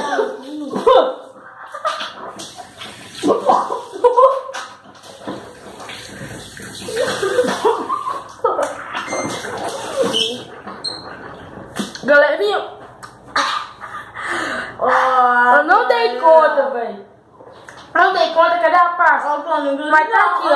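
Young boys talk and laugh with animation, close by.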